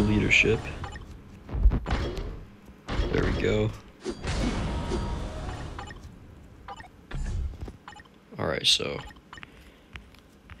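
Short electronic chimes and whooshes sound in bursts.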